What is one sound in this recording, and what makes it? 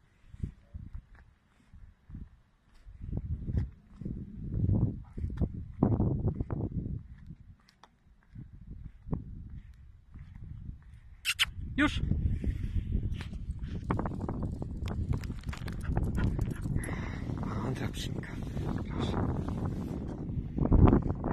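Footsteps tread on a paved path close by.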